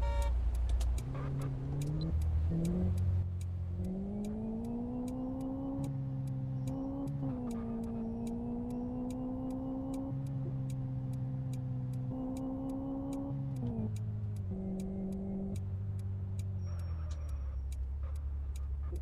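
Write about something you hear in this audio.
A car engine hums and revs up and down through gear changes.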